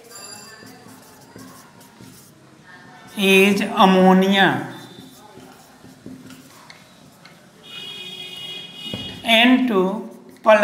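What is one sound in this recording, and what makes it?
A marker squeaks and scratches softly on a whiteboard.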